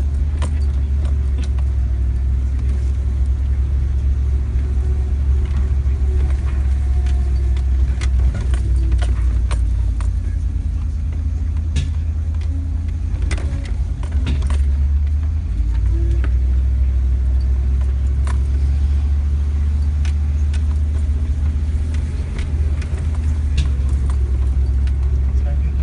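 Loose stones knock and rattle under the tyres on a rough track.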